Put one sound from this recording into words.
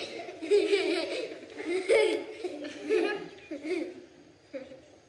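A group of children recite together in loud, rhythmic voices.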